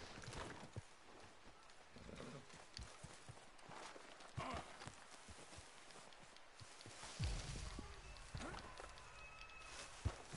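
Footsteps crunch through snow and brush.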